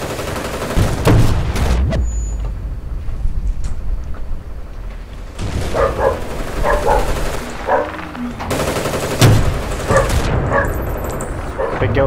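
An explosion booms close by.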